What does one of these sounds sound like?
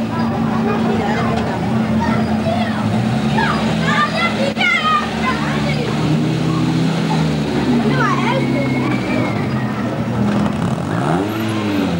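A rally car engine revs up and down as the car pulls away.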